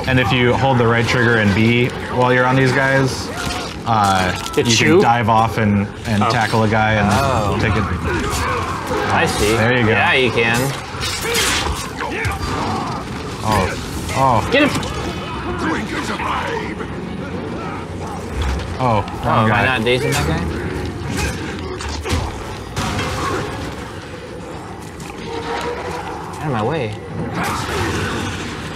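Several men talk with animation, heard through microphones.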